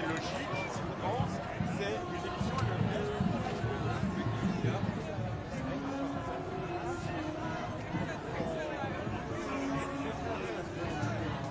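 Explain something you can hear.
A large crowd of men and women chatters and murmurs outdoors.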